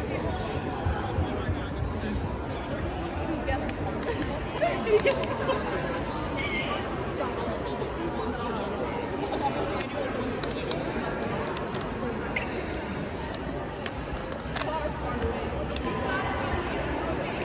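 Young women chatter together in a large echoing hall.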